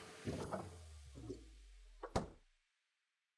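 A plastic cup knocks and clatters in a machine.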